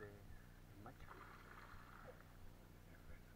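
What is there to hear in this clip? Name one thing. Something splashes into calm water nearby.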